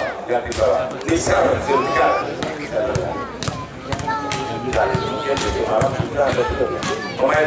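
A ball is struck with sharp thuds.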